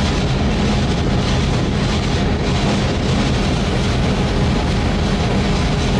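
A locomotive rumbles along rails, heard from inside its cab.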